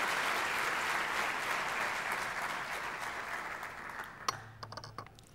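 A large audience applauds, fading away.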